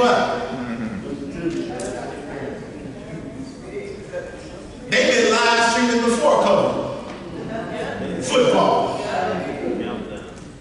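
A man speaks through a microphone in an echoing room, with animation.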